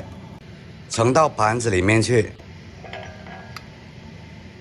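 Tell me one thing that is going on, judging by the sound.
A metal spoon clinks against a ceramic plate.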